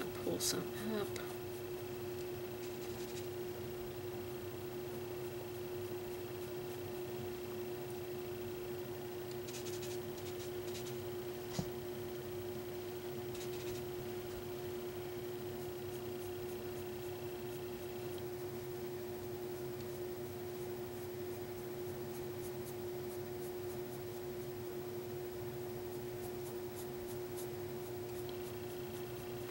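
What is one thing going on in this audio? A paintbrush brushes softly across a board.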